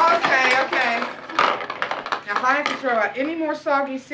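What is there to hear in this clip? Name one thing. A woman speaks loudly nearby.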